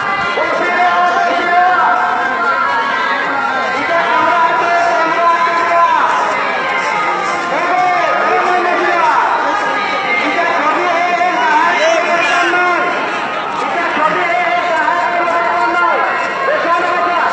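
A large crowd of men shouts and chants loudly outdoors, all around and close by.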